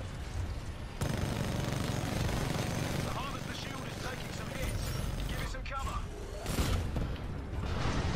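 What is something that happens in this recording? A heavy gun fires rapid bursts.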